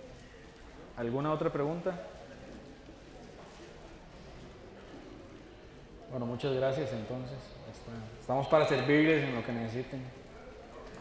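A man speaks through a microphone and loudspeakers in a large, echoing hall.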